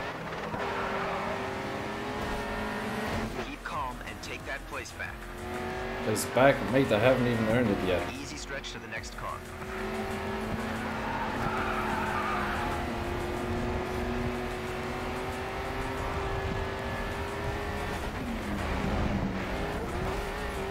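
Tyres screech as a car slides through corners.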